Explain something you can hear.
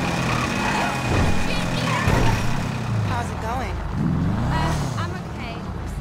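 A car engine rumbles and revs as the car drives.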